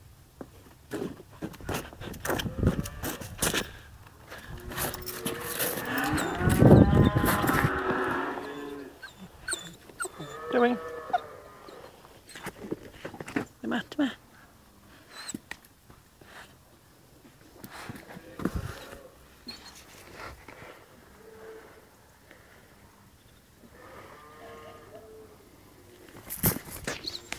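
A puppy scuffles and rustles close by.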